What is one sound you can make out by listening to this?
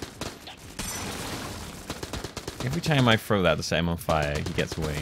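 A loud explosion booms in a video game.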